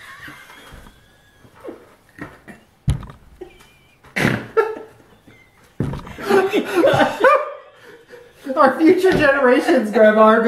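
An elderly woman laughs heartily close by.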